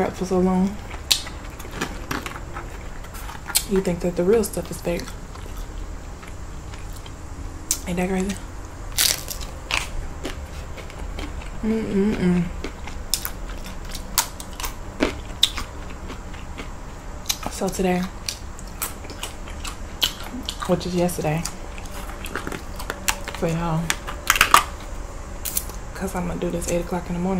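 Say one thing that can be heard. Crunchy chips crack and crunch as a young woman chews.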